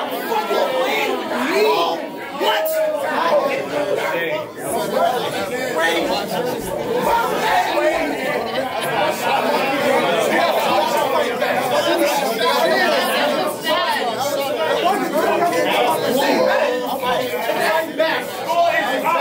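A young man raps loudly and with energy, close by.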